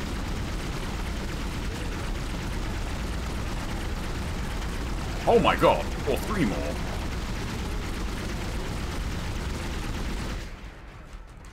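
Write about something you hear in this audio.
A low steady rumble drones.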